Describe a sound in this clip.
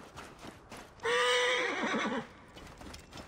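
A horse whinnies nearby.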